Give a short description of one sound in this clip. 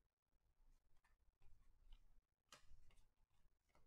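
Trading cards rustle and flick softly as hands shuffle through a stack.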